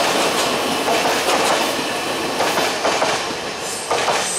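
A train rushes past on the tracks and fades away.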